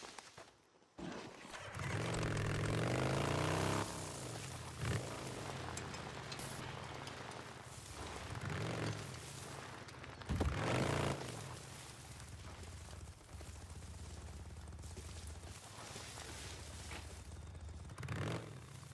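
A motorcycle engine starts and runs, revving up and down as it rides.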